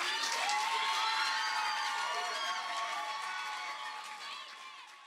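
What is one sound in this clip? A young woman sings a high, sustained melody into a microphone, heard through loudspeakers in an echoing hall, and her voice fades toward the end.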